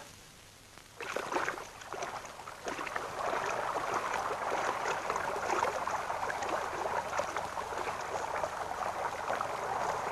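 Several people splash as they wade through a stream.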